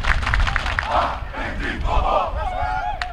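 A team of young men shouts and cheers together.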